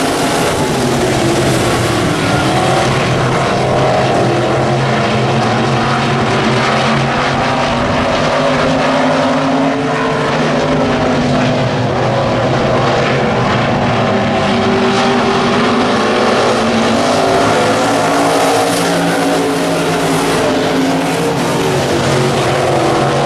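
Engines rev up and down as the cars take the turns.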